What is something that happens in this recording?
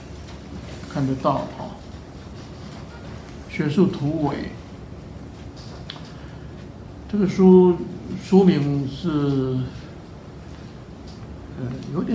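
An elderly man speaks calmly and slowly in short phrases, close to a microphone.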